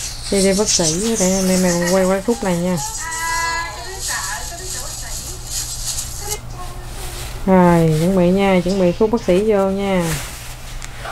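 A woman speaks softly in a sing-song voice close by.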